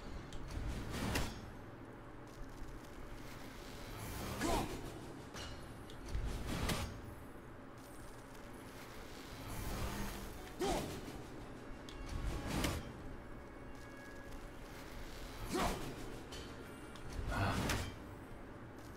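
A heavy axe swings with a whoosh and strikes again and again.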